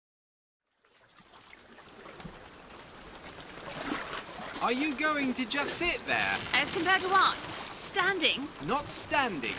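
Waves slosh and splash against a rowing boat.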